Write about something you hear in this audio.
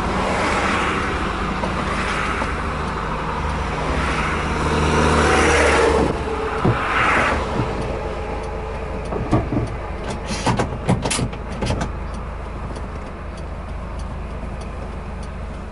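Tyres roar on a highway, heard from inside a moving car.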